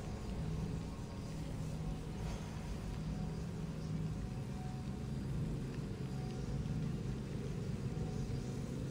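A small fire burns with a low, steady roar.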